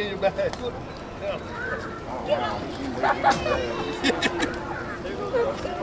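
Pigeons' wings flap as birds take off.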